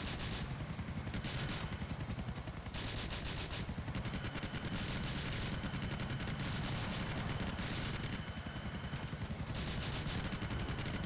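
A helicopter's rotor thumps rapidly and steadily.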